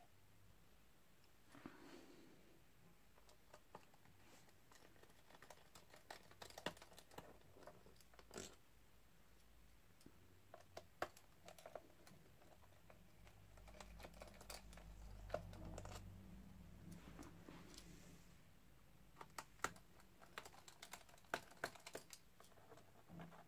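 A small screwdriver scrapes and turns in screws.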